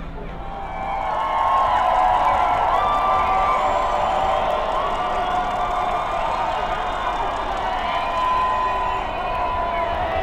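A large crowd chants and shouts loudly together.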